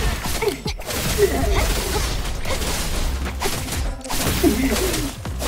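Heavy blows thud and clash repeatedly.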